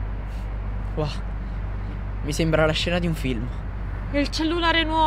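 A young man speaks quietly nearby.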